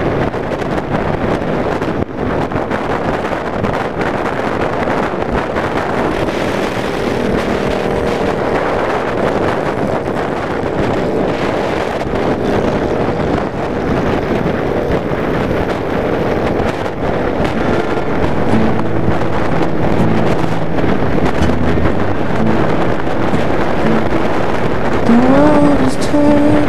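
A motorcycle engine rumbles steadily at cruising speed.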